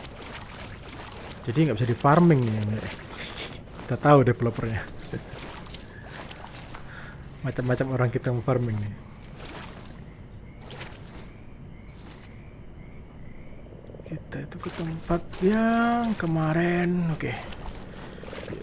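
Footsteps patter on damp ground.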